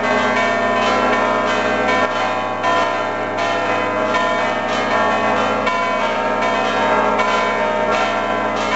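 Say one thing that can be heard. Church bells ring loudly and repeatedly, their tones overlapping and ringing on.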